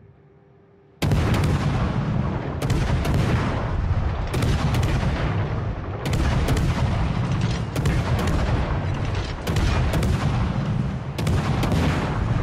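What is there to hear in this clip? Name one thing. Heavy naval guns fire in loud, booming volleys.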